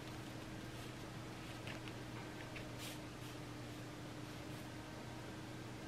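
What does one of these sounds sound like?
A brush dabs and taps softly on paper.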